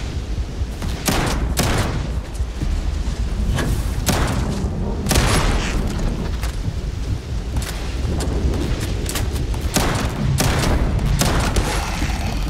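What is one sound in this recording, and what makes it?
A shotgun fires loud, booming blasts now and then.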